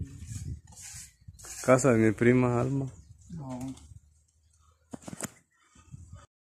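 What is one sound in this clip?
A trowel scrapes plaster across a ceiling.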